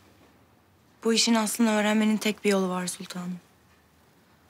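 A young woman answers calmly and quietly nearby.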